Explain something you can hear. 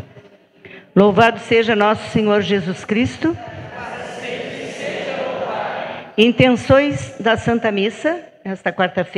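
A middle-aged woman speaks calmly into a microphone in an echoing hall.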